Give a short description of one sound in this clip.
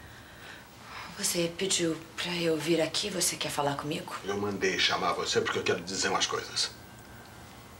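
A woman speaks tensely, close by.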